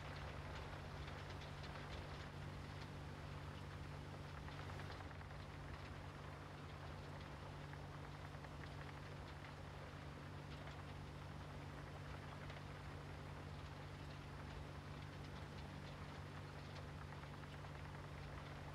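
A heavy diesel engine rumbles steadily.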